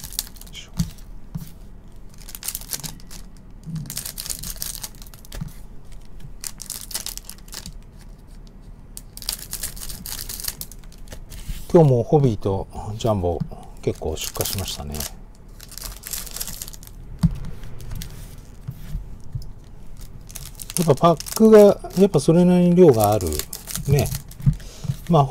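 Foil wrappers crinkle and rustle in hands.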